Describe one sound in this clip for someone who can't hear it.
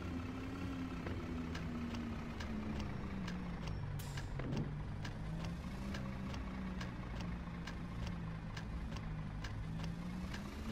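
A bus turn signal ticks.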